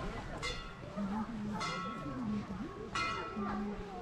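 Footsteps crunch on a path.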